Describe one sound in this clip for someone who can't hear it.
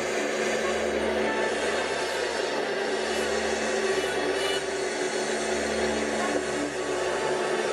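A live band plays loudly in an echoing hall.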